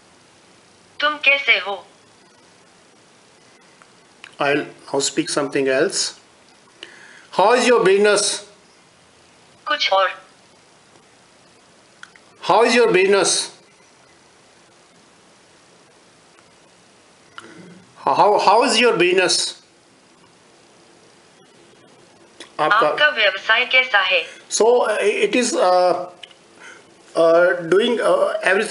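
A synthesized voice speaks short phrases through a small phone speaker.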